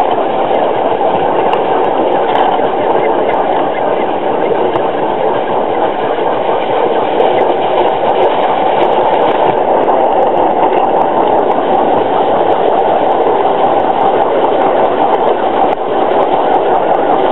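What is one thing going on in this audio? Wheels rattle and clatter on rails.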